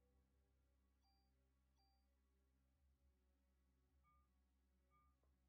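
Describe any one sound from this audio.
Short electronic menu beeps chime now and then.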